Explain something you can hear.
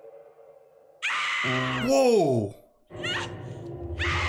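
A young woman groans in disgust close by.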